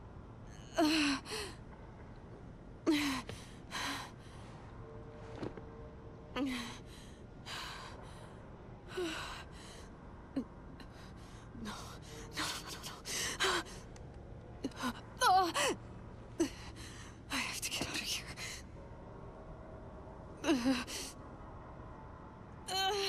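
A young woman gasps and pants heavily.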